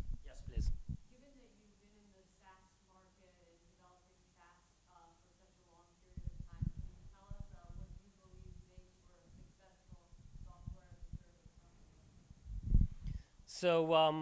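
Another man speaks quietly, farther from the microphone.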